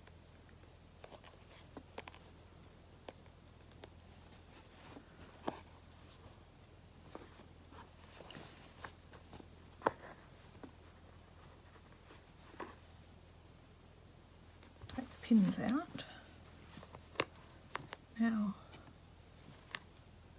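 A plastic hoop clicks and taps against fabric.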